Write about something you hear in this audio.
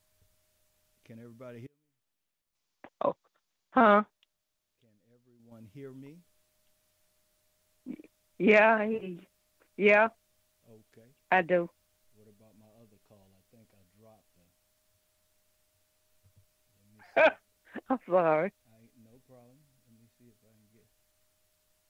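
A middle-aged man speaks with pauses, close to a microphone.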